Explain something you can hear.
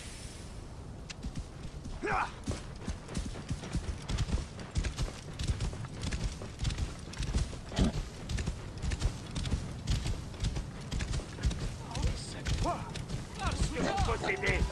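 Hooves thud rapidly on sand as a camel gallops.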